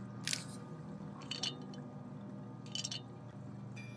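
A small item is picked up with a short click.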